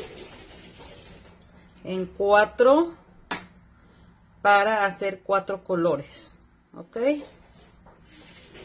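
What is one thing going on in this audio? Thick liquid pours and splashes softly into a pan.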